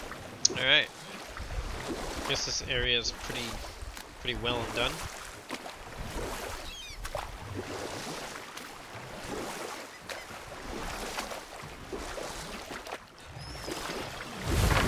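Oars splash and dip in water as a small boat is rowed.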